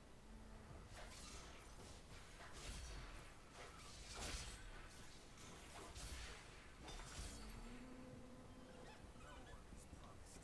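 Game battle effects clash, zap and whoosh in quick bursts.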